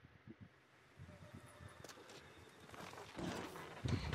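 Footsteps crunch on pavement.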